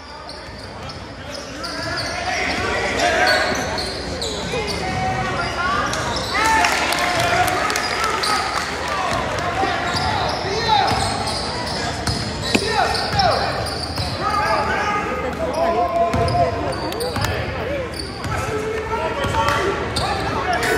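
A crowd in an echoing gym cheers and shouts, growing louder.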